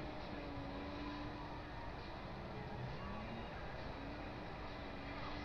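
Car engines rumble and rev.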